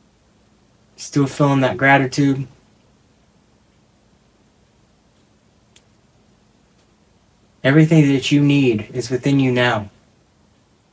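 A woman speaks calmly and slowly, close by.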